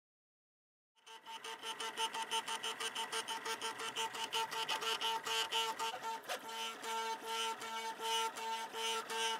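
A printer's stepper motors whir and buzz in rapid, rhythmic pulses.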